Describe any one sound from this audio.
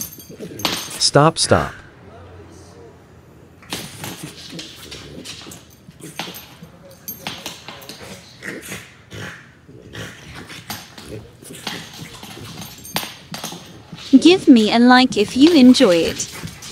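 A dog growls playfully.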